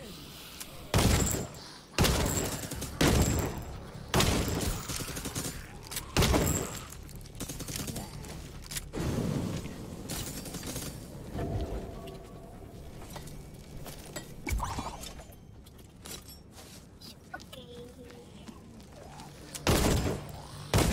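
Explosions boom during a fight.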